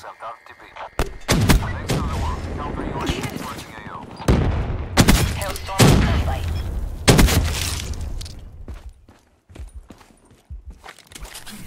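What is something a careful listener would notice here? Gunfire bursts out in rapid rounds.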